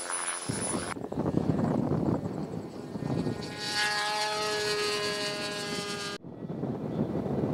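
A small model airplane engine buzzes loudly and whines as it speeds up.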